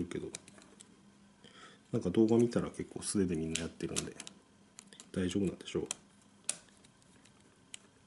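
A small screwdriver clicks and scrapes as it turns a tiny screw.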